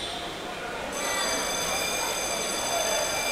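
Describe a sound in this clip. A referee blows a long, shrill whistle.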